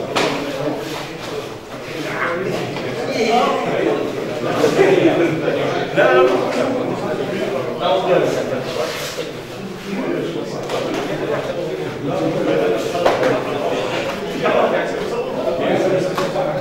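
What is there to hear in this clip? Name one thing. Many men talk at once in a large echoing hall.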